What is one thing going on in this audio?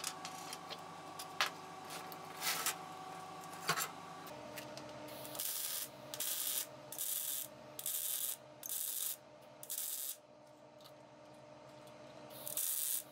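An angle grinder whines steadily as it spins.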